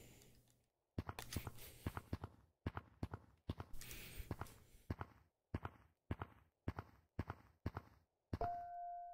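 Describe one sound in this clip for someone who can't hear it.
Quick footsteps tap on wooden planks.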